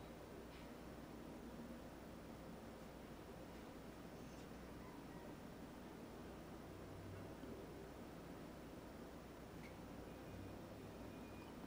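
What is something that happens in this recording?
A paintbrush softly strokes across a canvas.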